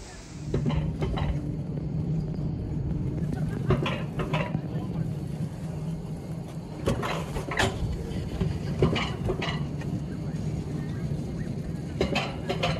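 A lift chair rumbles and rattles steadily as it moves along its cable.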